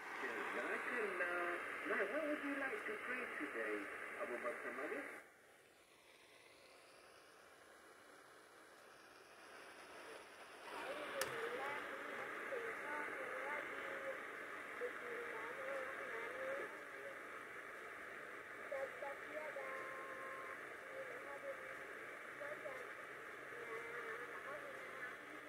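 A small portable radio plays a hissing, crackly broadcast that fades away for a few seconds and then comes back.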